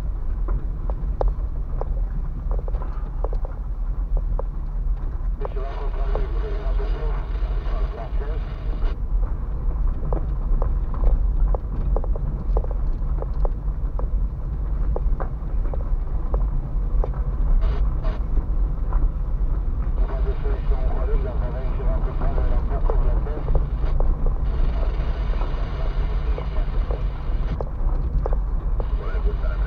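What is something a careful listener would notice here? A car engine rumbles low and steady from inside the cabin.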